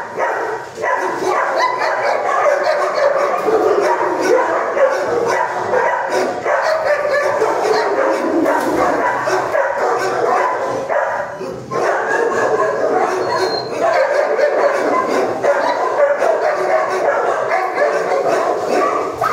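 A dog barks and howls loudly in an echoing room.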